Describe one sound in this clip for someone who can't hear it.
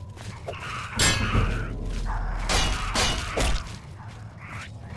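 Metal weapons clash loudly.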